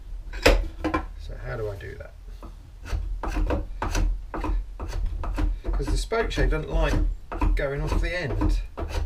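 A hand tool scrapes wood in short, repeated strokes.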